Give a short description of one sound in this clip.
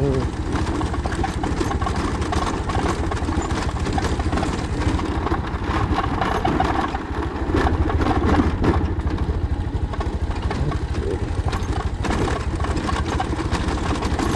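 A motorcycle engine runs steadily at low speed.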